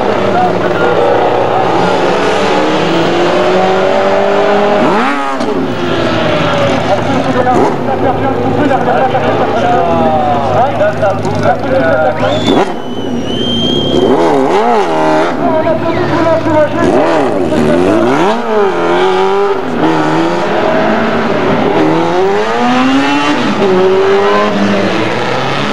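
A racing car engine revs loudly and whines up and down through the gears.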